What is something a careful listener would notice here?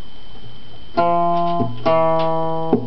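An acoustic guitar is plucked close by.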